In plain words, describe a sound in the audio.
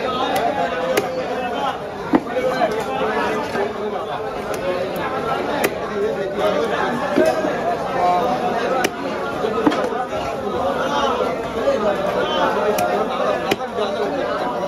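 A heavy knife chops through fish onto a wooden block with sharp thuds.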